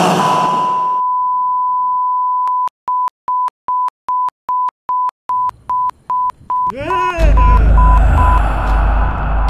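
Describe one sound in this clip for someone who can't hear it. A steady high test tone sounds, then breaks into short repeated beeps.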